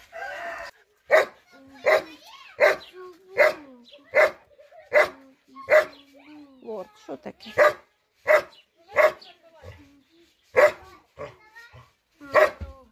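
A puppy yelps and whines repeatedly, close by.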